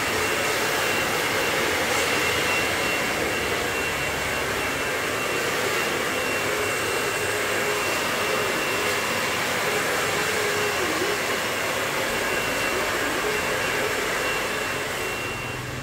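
A hair dryer blows with a steady loud whirr close by.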